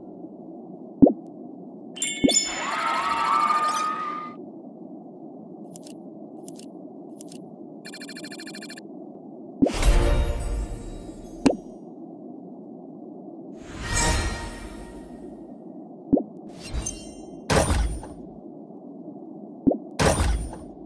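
Game menu sounds chime and click.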